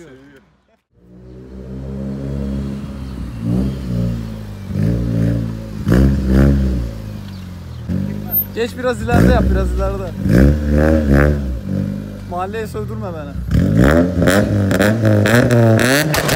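A car engine idles and revs loudly, rising and falling.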